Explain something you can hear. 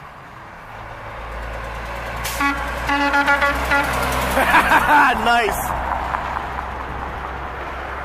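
A heavy truck approaches with a loud engine rumble and roars past close by.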